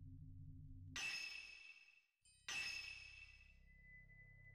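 A soft electronic chime sounds as a game menu opens.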